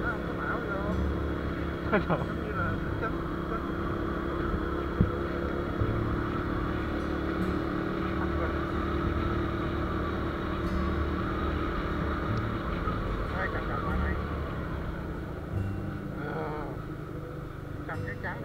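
A motorbike engine hums steadily as it rides along.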